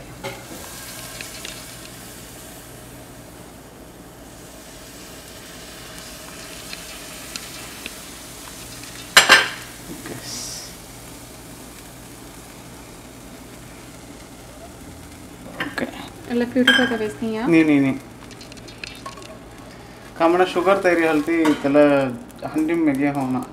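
Butter sizzles softly in a hot frying pan.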